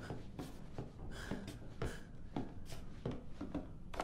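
Footsteps creak across a wooden floor.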